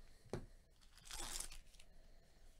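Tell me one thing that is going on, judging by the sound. A foil pack tears open.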